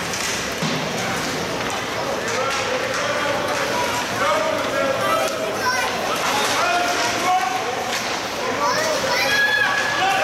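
Skate blades scrape across the ice.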